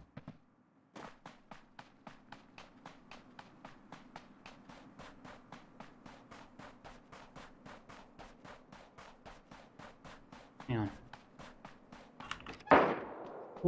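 Footsteps crunch quickly and steadily on snow.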